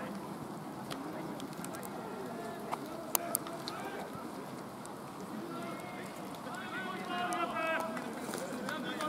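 A crowd of players and spectators chatters and calls out outdoors.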